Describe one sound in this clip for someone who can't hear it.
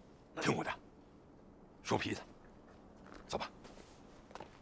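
A man speaks briefly and firmly nearby.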